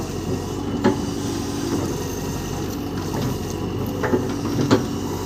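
Metal parts of an excavator arm clank.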